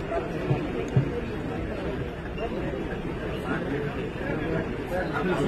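A crowd of men and women murmur and talk close by outdoors.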